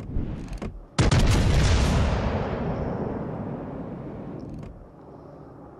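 Heavy guns fire with a deep boom that rolls away slowly.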